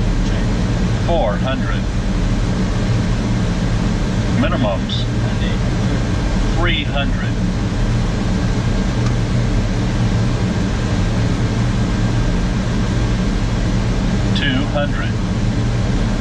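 A man's voice speaks briefly over a headset radio.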